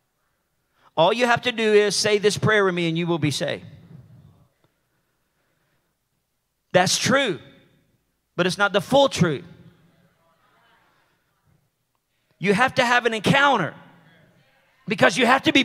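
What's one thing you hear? A man speaks with animation through a microphone, in bursts with pauses, in a large echoing hall.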